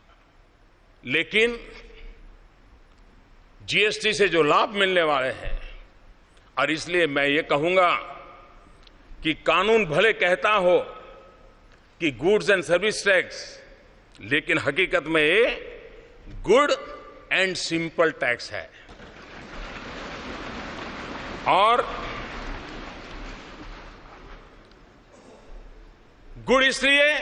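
An elderly man speaks slowly and firmly into a microphone in a large hall.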